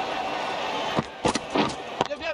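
A bat cracks against a cricket ball.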